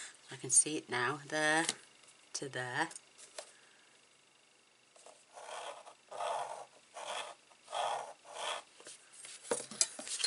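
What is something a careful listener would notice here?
A tool scrapes along paper beside a ruler.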